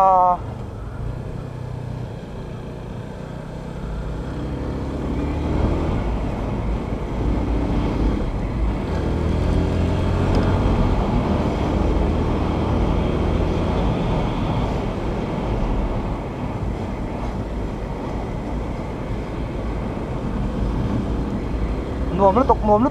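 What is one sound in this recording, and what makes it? A motorcycle engine hums steadily, rising and falling in pitch as the rider speeds up and slows.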